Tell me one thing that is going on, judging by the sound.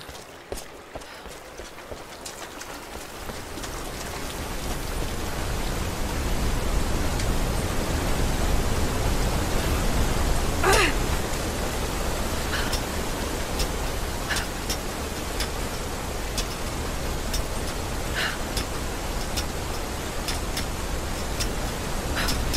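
A waterfall roars steadily, growing louder.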